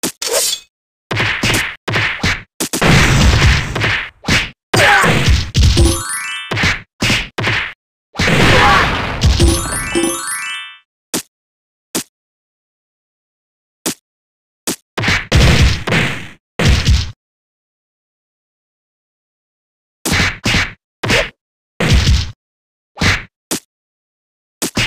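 Punches and kicks land with sharp thuds in a game.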